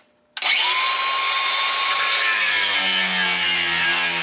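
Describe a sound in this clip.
An angle grinder's disc screeches as it grinds into metal.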